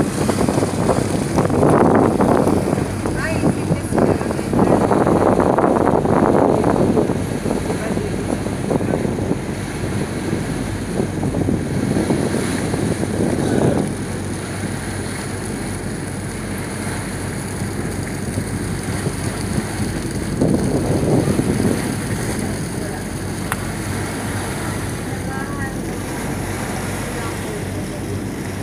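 Water splashes and laps against a hull.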